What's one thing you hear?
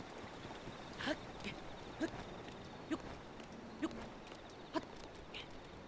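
A climbing character's hands grip rock with sharp, short knocks.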